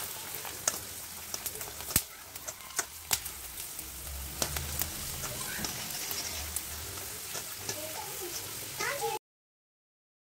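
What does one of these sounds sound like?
A metal strainer scrapes and clinks against a pan.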